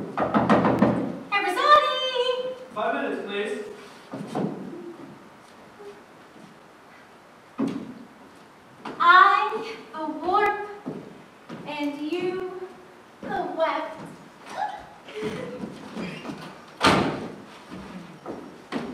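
A young woman speaks with animation, heard from a distance in a large hall.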